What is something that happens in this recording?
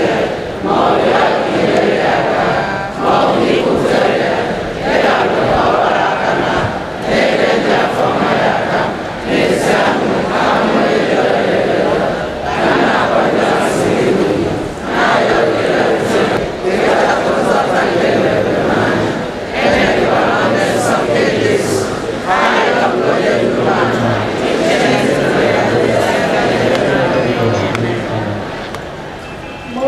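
A large crowd chants and murmurs outdoors.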